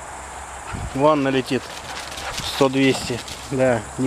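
A dog barks repeatedly outdoors.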